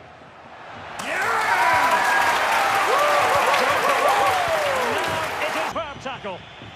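A large stadium crowd roars loudly, then dies down.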